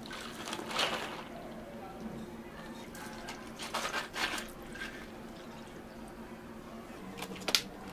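Liquid pours over ice in a cup.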